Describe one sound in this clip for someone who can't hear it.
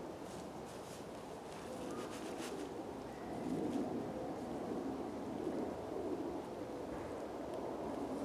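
A tarp rustles and crinkles close by.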